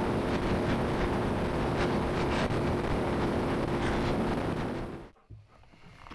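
A motorcycle engine roars steadily at speed.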